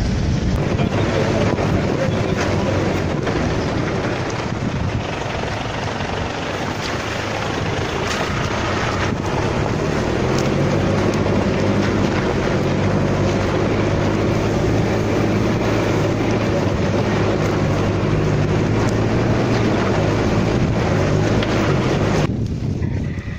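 A car engine rumbles close by.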